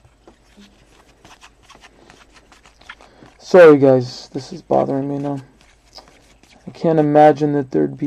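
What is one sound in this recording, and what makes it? A plastic wrapper crinkles and rustles in someone's hands.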